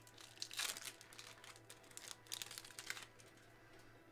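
Plastic card wrappers crinkle and rustle as they are handled.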